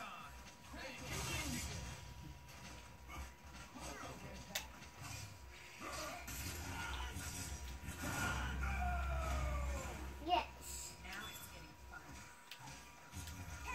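Video game fighting sounds, sweeping effects and impacts play through a television loudspeaker.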